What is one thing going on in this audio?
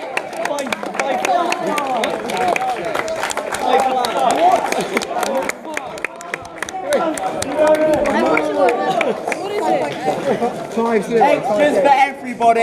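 A crowd of young men and boys cheers and shouts excitedly nearby.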